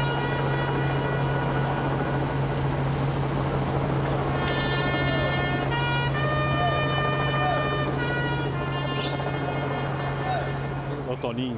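A trumpet plays a slow, solemn tune outdoors.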